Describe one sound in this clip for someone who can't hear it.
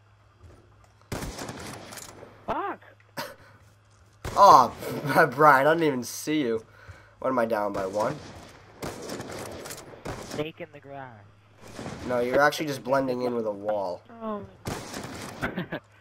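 A rifle fires a loud single shot.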